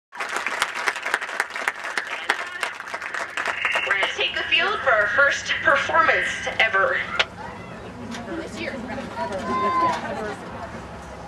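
Young people chatter and call out across an open outdoor field.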